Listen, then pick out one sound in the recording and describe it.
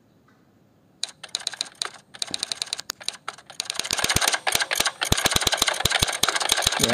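Typewriter keys clack rapidly.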